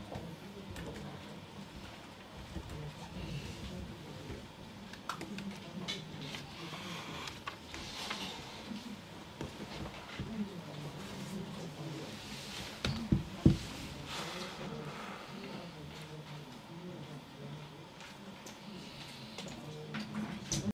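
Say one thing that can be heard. A man speaks calmly into a microphone nearby.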